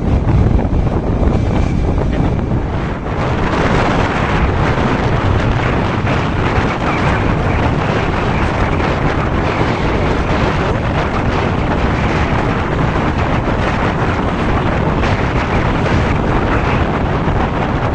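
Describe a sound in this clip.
Wind rushes loudly past, as if riding through the open air.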